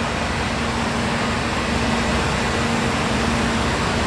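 A fire hose sprays water with a steady hiss.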